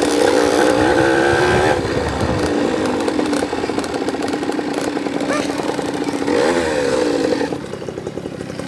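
A dirt bike engine roars and revs up close.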